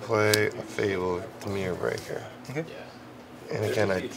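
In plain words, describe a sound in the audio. Playing cards slide and tap softly on a play mat.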